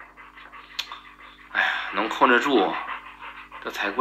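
A dog pants.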